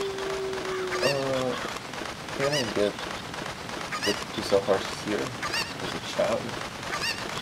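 A man talks casually into a close microphone.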